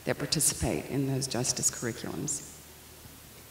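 A woman speaks calmly into a microphone, heard through a loudspeaker.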